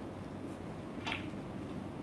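Snooker balls click together.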